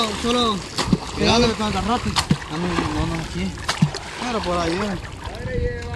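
Water splashes as a fishing net is thrown and pulled.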